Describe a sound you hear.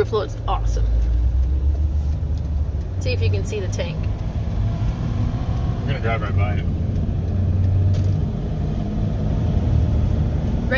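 A vehicle engine hums steadily with a low road rumble while driving.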